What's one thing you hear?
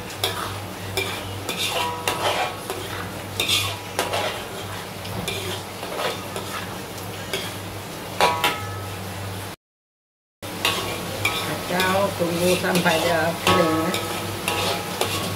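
A metal spoon scrapes and clinks against a metal wok while stirring.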